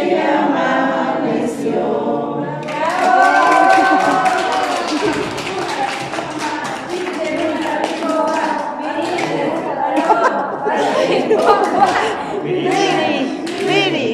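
A group of men and women sing together nearby.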